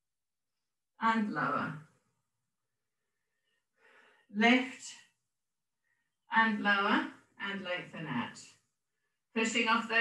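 A woman speaks calmly in short phrases with pauses.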